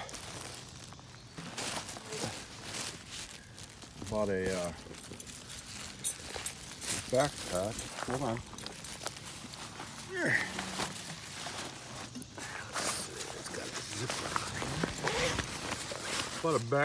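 Dry leaves crunch underfoot.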